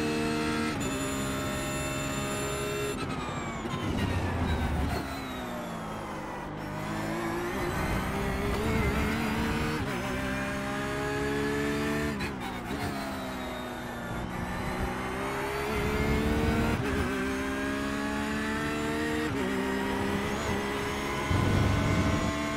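A racing car engine revs hard, rising through the gears and dropping as it brakes for corners.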